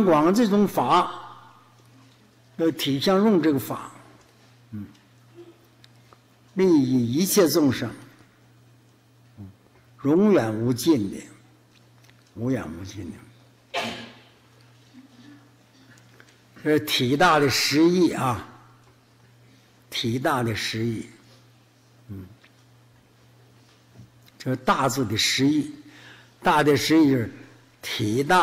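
An elderly man speaks slowly and calmly into a microphone, with long pauses between phrases.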